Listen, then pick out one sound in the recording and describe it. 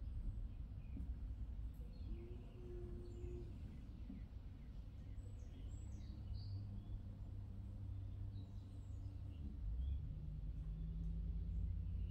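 A potter's wheel hums steadily.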